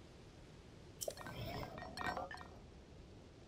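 A stone machine unfolds with clanking, whirring mechanical sounds.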